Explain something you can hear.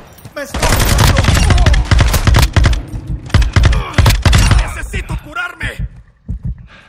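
A rifle fires rapid bursts of loud gunshots.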